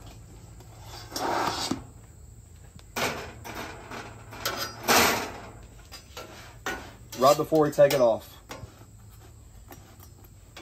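A metal spatula scrapes across a hot griddle.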